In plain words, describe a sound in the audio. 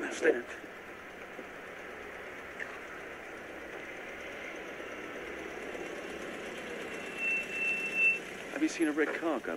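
A van engine rumbles as it drives up and stops.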